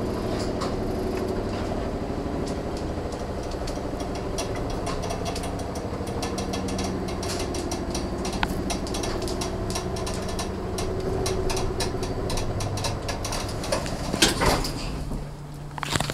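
An old elevator hums and rattles steadily as it moves.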